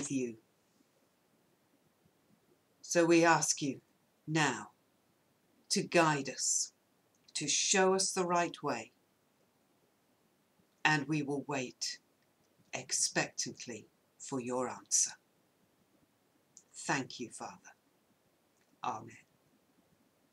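A middle-aged woman speaks calmly and slowly, close by, reading out in short phrases with pauses.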